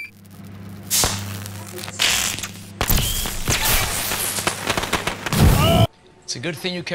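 Shimmering electronic whooshes and chimes swell and burst.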